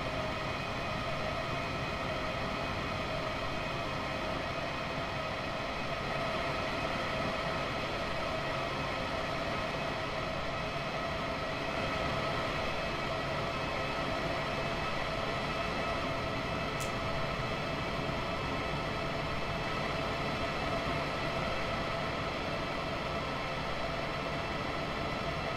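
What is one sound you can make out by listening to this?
An electric locomotive hums steadily while standing still.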